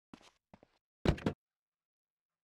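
A car door opens with a thud.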